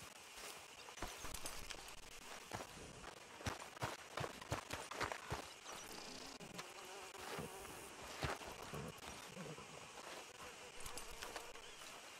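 Footsteps crunch on dirt and then thud on wooden boards.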